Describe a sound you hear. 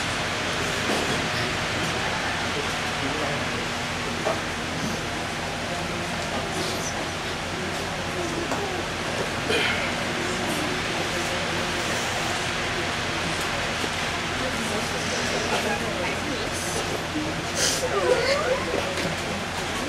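A crowd murmurs in the background of a large room.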